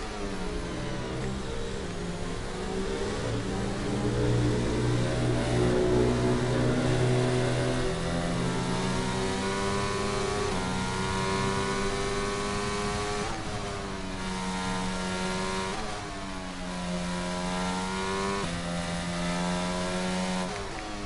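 A racing car engine revs high and whines, dropping in pitch at each gear change.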